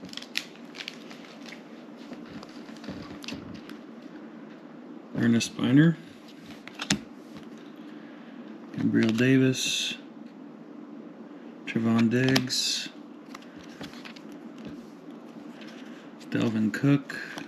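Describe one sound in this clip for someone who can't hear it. Glossy trading cards slide against each other as they are flipped through.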